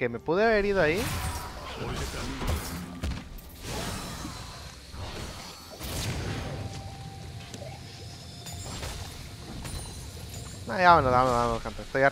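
Video game spell effects whoosh and crackle during a battle.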